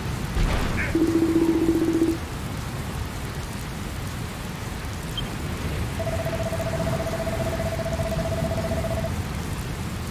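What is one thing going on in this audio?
A steady electronic beep sounds as dialogue text scrolls.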